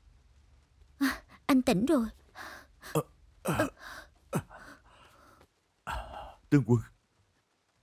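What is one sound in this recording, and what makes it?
A young man groans and gasps in pain close by.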